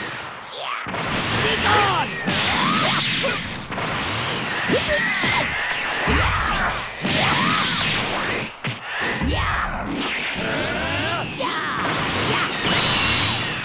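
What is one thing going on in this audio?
Energy blasts whoosh and explode.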